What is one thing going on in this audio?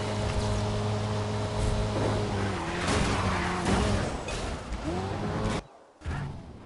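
A race car engine roars and shifts gears.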